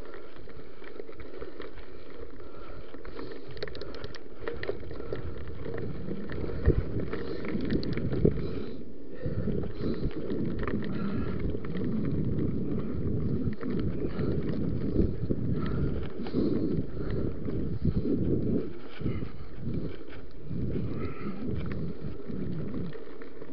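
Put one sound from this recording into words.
Bicycle tyres roll and crunch over a gravel trail.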